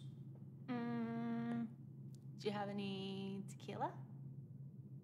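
A young woman hums and speaks in a sultry, drawn-out voice close by.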